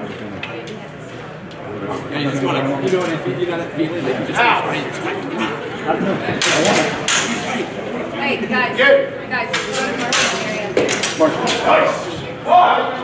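Wooden practice swords clack together in sharp knocks.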